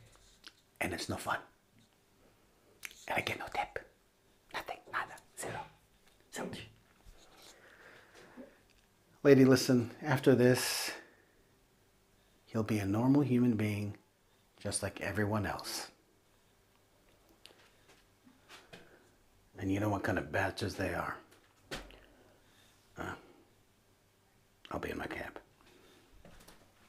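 A middle-aged man talks with animation close by, with pauses between phrases.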